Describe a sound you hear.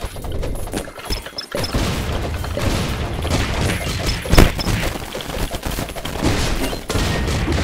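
Video game music plays throughout.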